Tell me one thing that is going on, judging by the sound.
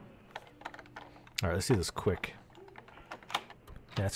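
A lock clicks and rattles as it is picked.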